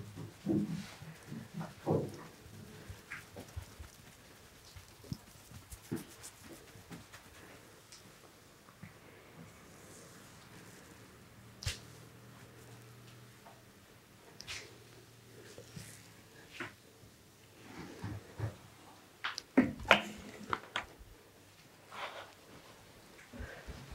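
Hands rustle and rub through hair close by.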